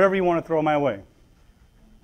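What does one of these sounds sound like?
A man speaks loudly and animatedly into a microphone.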